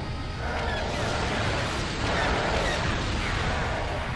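A small explosion bursts with a bang.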